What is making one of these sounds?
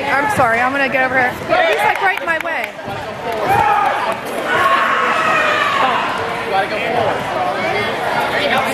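A crowd of children and adults shouts and cheers loudly in an echoing hall.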